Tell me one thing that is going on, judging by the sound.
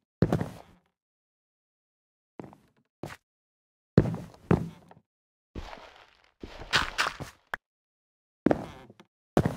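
Dirt crunches in short bursts as blocks are dug and break apart.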